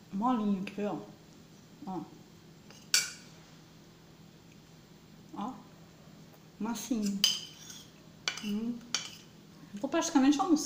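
A metal spoon clinks and scrapes against a ceramic plate.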